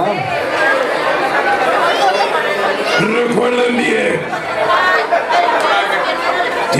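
A middle-aged man talks with animation into a microphone, heard through loudspeakers.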